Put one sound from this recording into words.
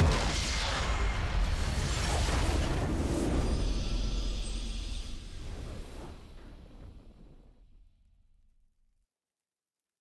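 A triumphant game fanfare swells and fades out.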